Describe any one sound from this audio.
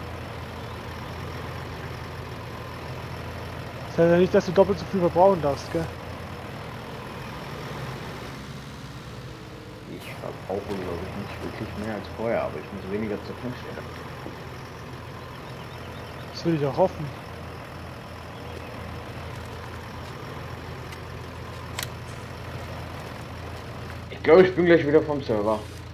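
A tractor engine hums steadily at idle.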